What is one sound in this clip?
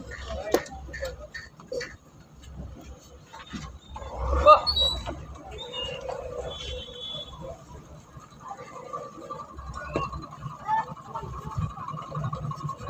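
Men talk in the distance.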